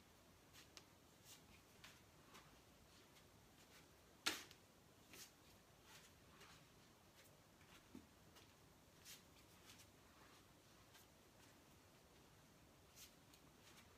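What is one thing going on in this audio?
Bare feet thump and shuffle on a wooden floor.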